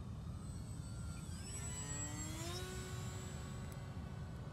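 A small propeller plane whines overhead, its pitch sliding down as it passes.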